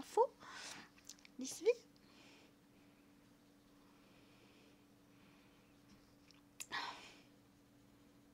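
A young woman speaks softly and casually into a close microphone.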